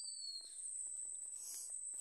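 A leaf rustles under fingers.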